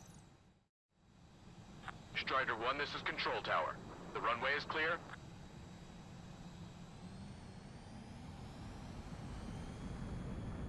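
A jet engine hums and slowly rises in pitch.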